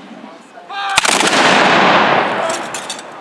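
A volley of muskets fires with a loud boom that rolls away.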